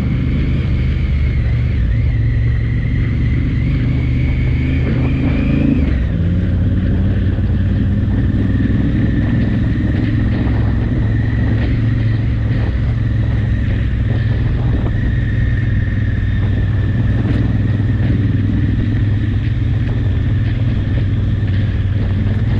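A motorcycle engine hums steadily close by, shifting gear now and then.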